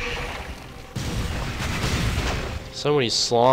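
A crackling magic beam zaps.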